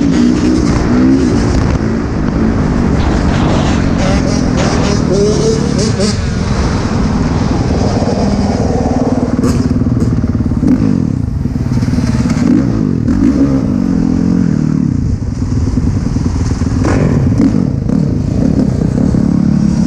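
Other dirt bike engines whine nearby, rising and falling.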